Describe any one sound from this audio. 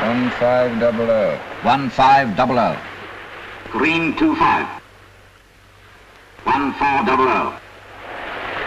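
A man speaks urgently.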